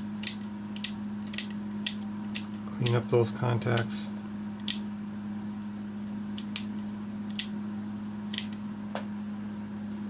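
Small plastic parts click sharply as a circuit board is handled.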